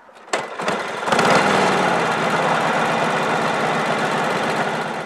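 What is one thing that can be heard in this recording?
A motorcycle engine starts and runs with a loud rumble.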